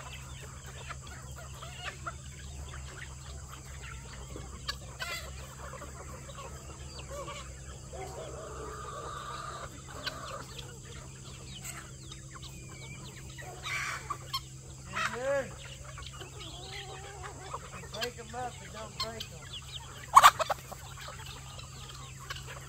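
A large flock of chickens clucks and cackles nearby, outdoors.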